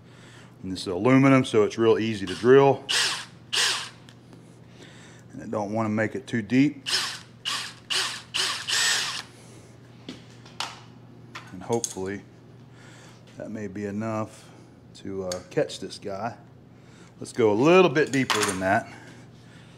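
A cordless drill whirs in short bursts, spinning up and winding down.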